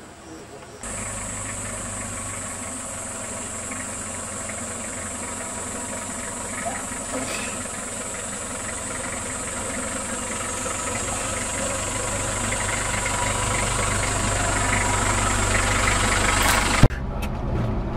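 A van engine rumbles as the van drives slowly closer, growing louder.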